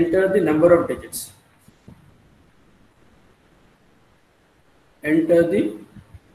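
A man speaks calmly through an online call microphone, pausing between phrases.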